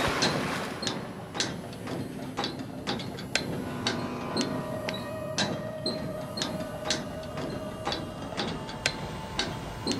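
Footsteps clank on metal ladder rungs in a steady rhythm, echoing in a narrow shaft.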